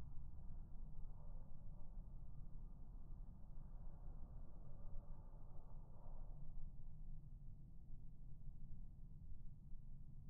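Thunder rumbles low and deep in the distance.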